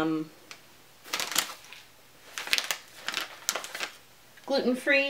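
A plastic snack bag crinkles.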